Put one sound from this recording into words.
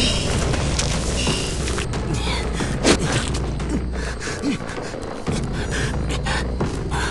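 A fire crackles and hisses steadily.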